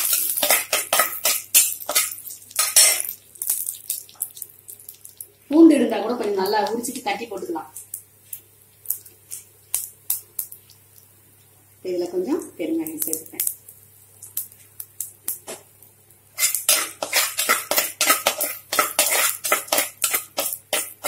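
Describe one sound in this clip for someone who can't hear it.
A metal spatula scrapes and clatters against a clay pot.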